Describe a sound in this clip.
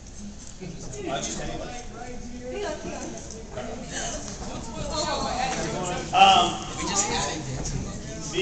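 A crowd of men and women chatter nearby in a large hall.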